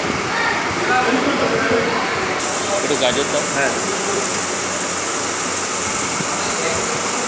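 Men chat nearby.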